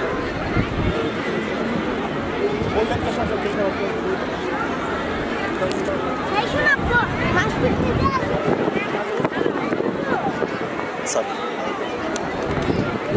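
A large outdoor crowd chatters and calls out throughout.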